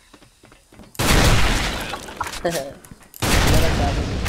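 A sniper rifle fires loud, booming shots.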